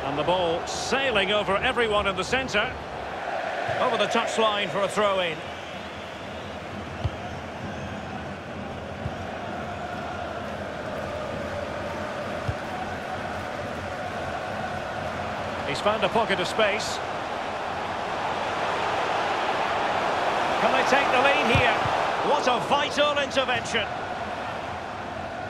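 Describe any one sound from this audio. A large crowd roars steadily in a stadium, swelling louder near the end.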